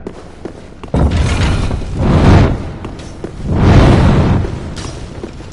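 A heavy weapon swings and strikes with loud crashing blows.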